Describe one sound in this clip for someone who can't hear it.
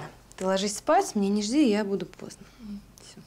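A young woman speaks softly and warmly nearby.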